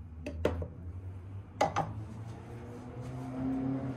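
A glass knocks down onto a hard surface.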